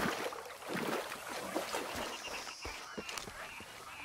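Footsteps crunch on wet ground.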